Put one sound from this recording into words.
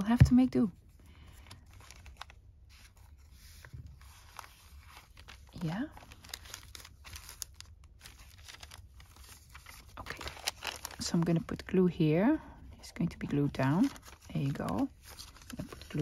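Paper rustles and crinkles softly close by.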